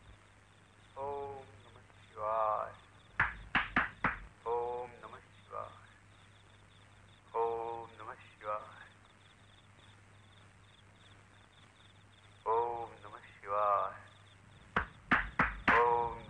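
A man groans and gasps in pain.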